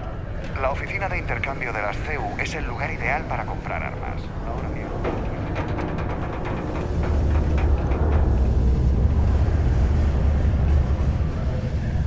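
Footsteps run across a metal floor.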